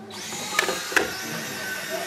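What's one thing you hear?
Two small robots bump together with a knock.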